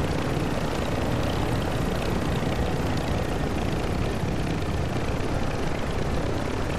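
A helicopter's rotor chops loudly and steadily.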